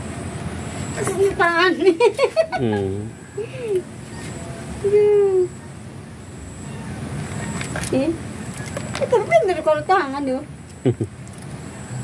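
Cats meow loudly, over and over.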